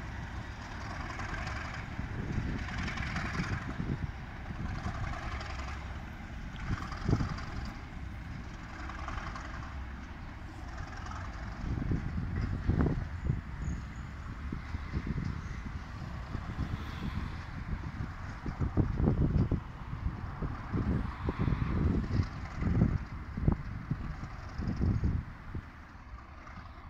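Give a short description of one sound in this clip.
A train rumbles slowly closer in the distance.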